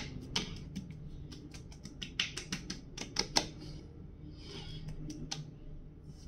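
A man slaps and pats his cheeks.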